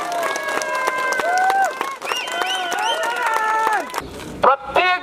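A crowd of men chants slogans loudly in unison.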